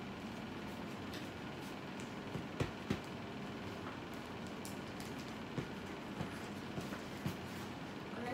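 Paper rustles and taps as it is handled.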